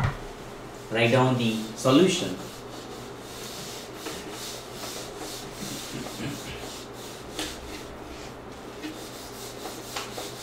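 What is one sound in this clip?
A duster rubs and squeaks across a whiteboard.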